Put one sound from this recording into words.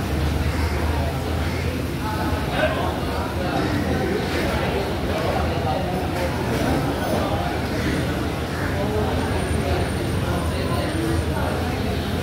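Many people chatter at once in a busy, echoing room.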